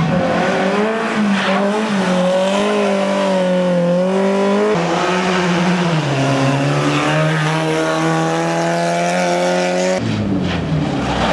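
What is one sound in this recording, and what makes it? A rally car engine roars and revs hard as it drives past.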